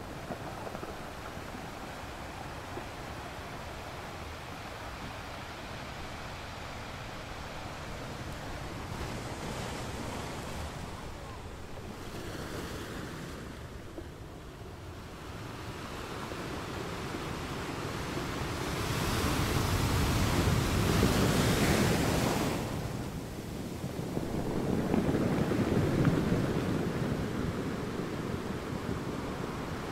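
Waves crash and roar against rocks, swelling and fading.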